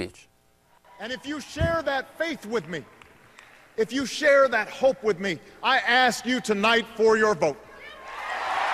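A man speaks forcefully through a loudspeaker in a large hall.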